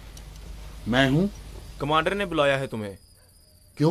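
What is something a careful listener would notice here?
A young man speaks firmly nearby.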